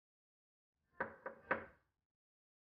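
Knuckles knock on a wooden door.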